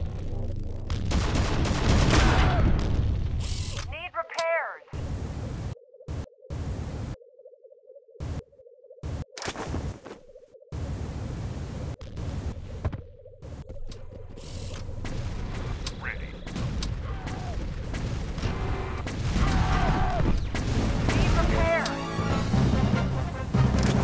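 Gunfire and explosions from a video game boom and crackle.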